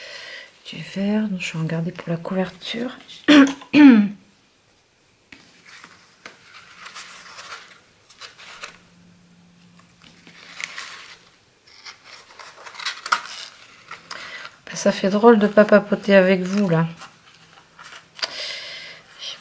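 Paper and ribbon rustle softly as they are handled.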